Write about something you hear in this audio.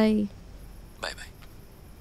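A young woman speaks quietly on a phone.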